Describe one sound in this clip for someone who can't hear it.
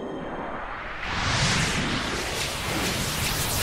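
A bright magical whoosh swells and fades.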